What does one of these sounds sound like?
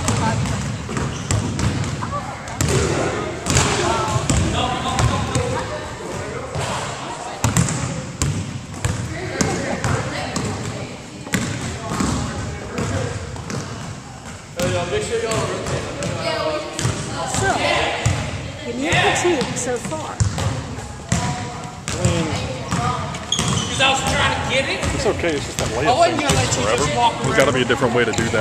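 A basketball bounces on a wooden floor with a hollow echo in a large gym.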